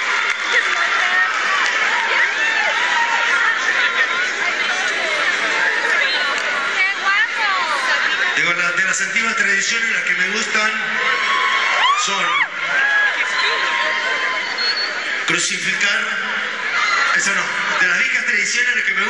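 A rock band plays loudly through big speakers in a large hall.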